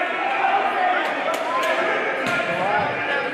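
A basketball bounces on the wooden floor.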